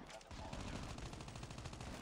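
A submachine gun fires.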